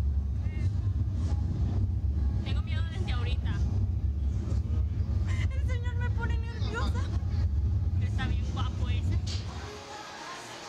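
Two young women talk close by before the ride launches.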